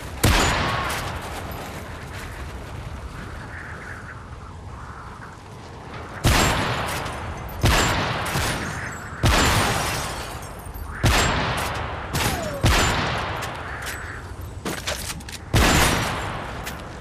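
A rifle fires loud, single shots that echo and fade, every second or two.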